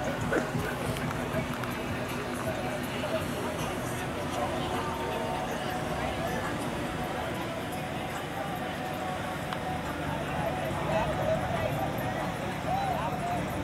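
Car engines rumble steadily as vehicles roll slowly past.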